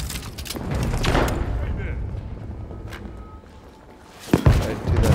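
Gunshots bang and echo.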